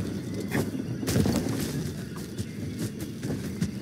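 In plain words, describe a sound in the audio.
Leaves and vines rustle as someone climbs.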